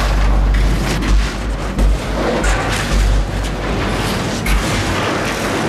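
Metal beams crash and debris rumbles with heavy booms.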